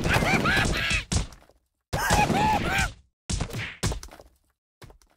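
Stones crack and crumble with heavy thuds.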